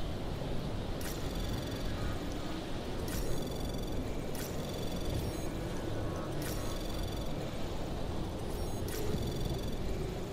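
Short electronic chimes ring out now and then.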